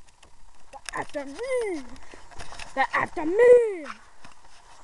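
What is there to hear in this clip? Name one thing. A young boy squeals and talks close by.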